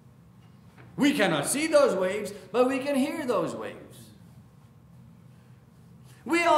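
A middle-aged man speaks with animation through a microphone in a reverberant hall.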